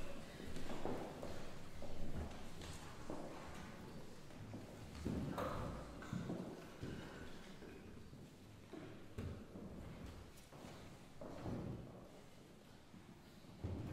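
A string quartet plays softly.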